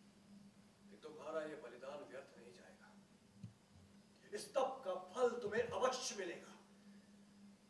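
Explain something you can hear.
A man speaks forcefully and angrily nearby.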